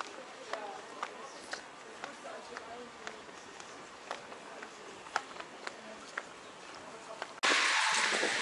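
Footsteps tap on cobblestones nearby.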